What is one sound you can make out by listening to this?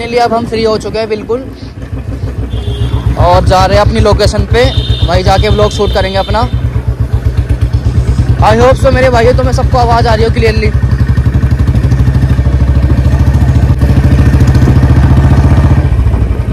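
A motorcycle engine thumps steadily up close as the bike rides along.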